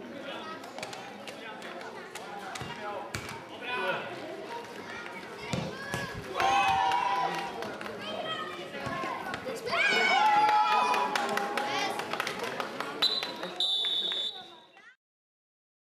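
Children shout and cheer outdoors during a football game.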